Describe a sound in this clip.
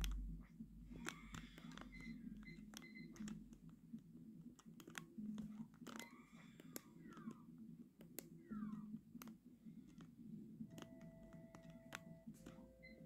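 Video game sound effects beep, chime and chirp from a television.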